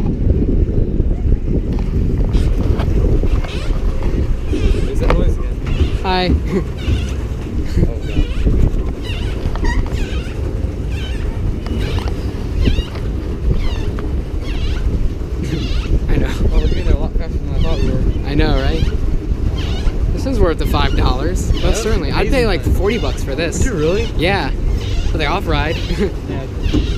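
Water laps and splashes against a paddle boat.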